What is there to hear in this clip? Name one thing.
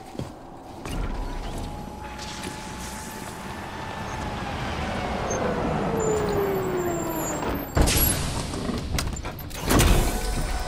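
A large walking machine whirs and hums as it approaches.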